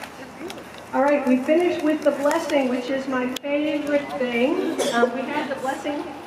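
An elderly woman speaks calmly through a microphone and loudspeaker, outdoors.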